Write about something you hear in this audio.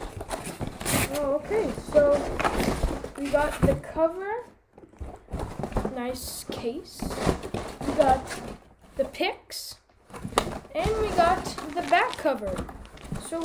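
A boy talks with animation close by.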